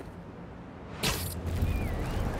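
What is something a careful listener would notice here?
A web line shoots out with a sharp snap.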